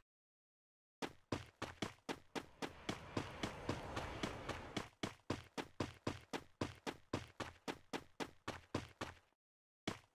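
Footsteps patter quickly and evenly as a character runs.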